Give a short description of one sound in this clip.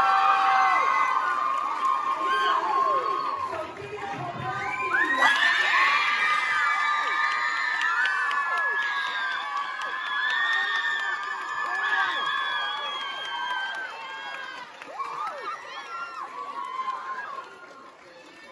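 A crowd of young girls cheers and screams loudly in a large echoing hall.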